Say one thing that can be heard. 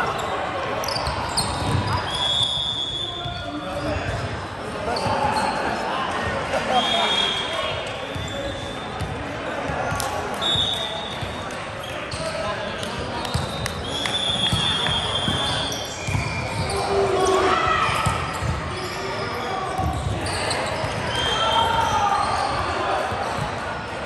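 Young men and women call out and chatter around the court.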